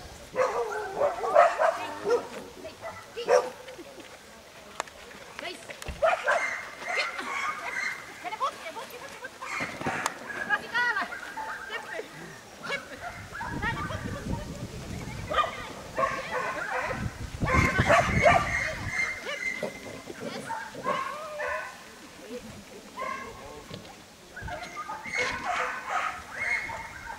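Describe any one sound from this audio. A woman calls out short commands to a dog with animation, outdoors.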